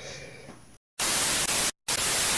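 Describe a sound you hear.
Loud static hisses and cuts out briefly.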